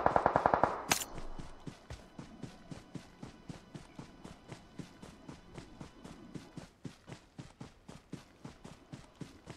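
Footsteps run on grass.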